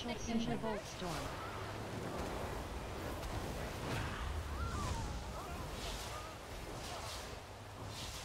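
Magic spells burst and whoosh in rapid succession in a video game battle.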